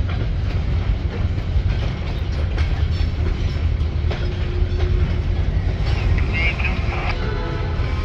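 A freight train rolls past with a low rumble.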